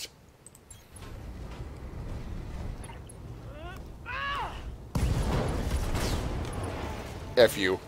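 Heavy metal machines stomp and crash with a deep rumble.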